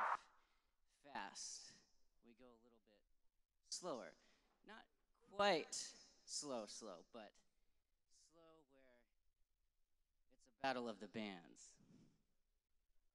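A young man speaks in short phrases into a microphone over loudspeakers.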